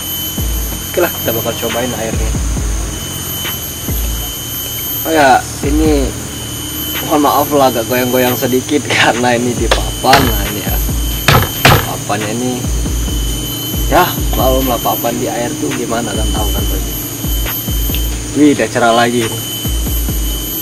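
A young man talks close by, in a casual, chatty way.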